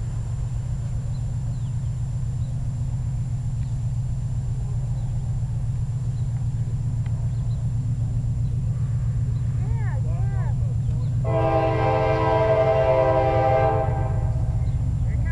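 A train rumbles steadily as it approaches from far off.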